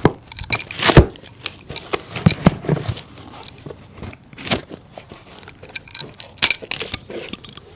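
A hammer taps sharply on a shoe sole.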